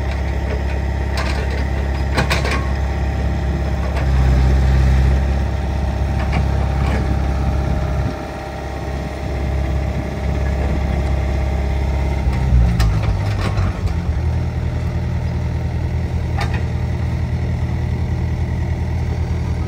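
An excavator bucket scrapes and knocks against dirt and rubble.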